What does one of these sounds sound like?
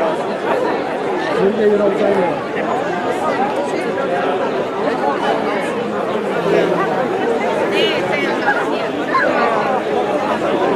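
A large crowd outdoors chatters and calls out in many voices.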